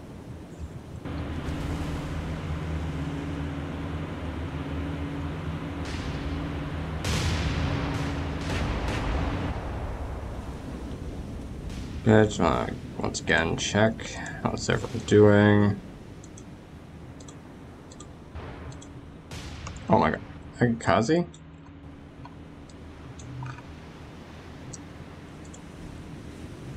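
A ship's engine drones low and steady.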